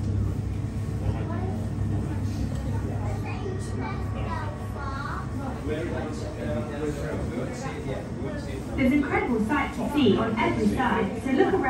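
Adults and young people chat nearby in a small enclosed space.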